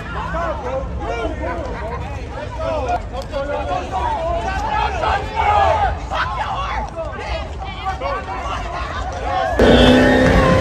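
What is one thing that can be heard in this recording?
A crowd of young men and women shout angrily outdoors, close by.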